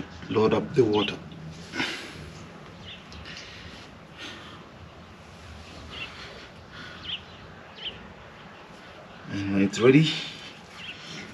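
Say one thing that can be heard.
A man speaks briefly and casually, close by.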